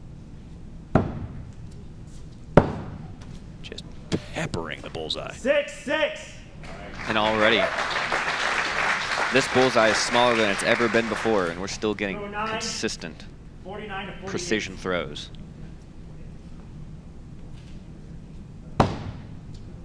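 An axe thuds sharply into a wooden target.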